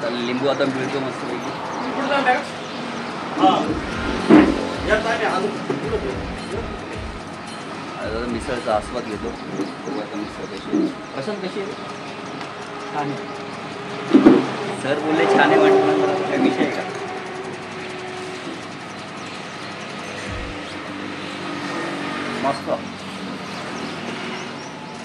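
A young man talks casually close by.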